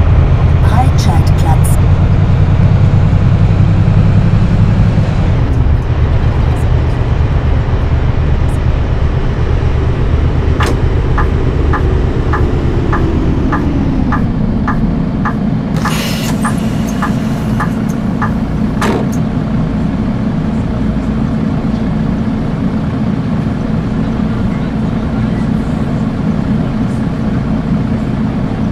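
A bus engine rumbles steadily, easing down as the bus slows.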